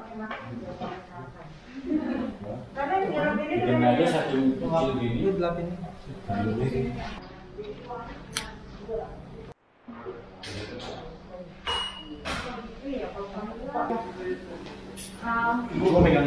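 Men talk nearby in a large, echoing room.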